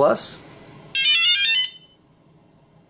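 A drone plays a quick series of electronic beeps as it powers on.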